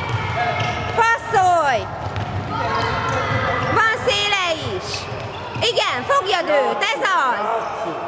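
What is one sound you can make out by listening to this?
Sneakers squeak sharply on a wooden floor in an echoing hall.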